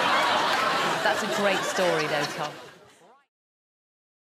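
A young man speaks into a microphone with amusement.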